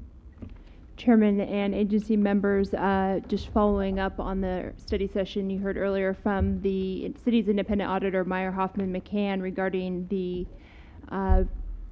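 A young woman speaks steadily and clearly into a close microphone.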